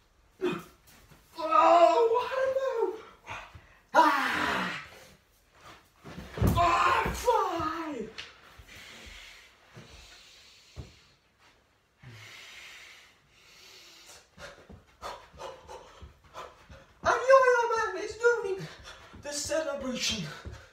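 Feet thump on a carpeted floor.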